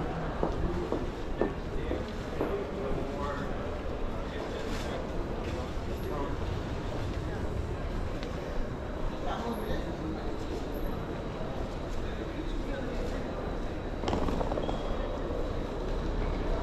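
A crowd murmurs in the background of a large echoing hall.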